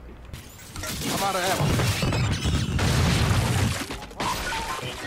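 Gunfire and explosions rattle in a battle.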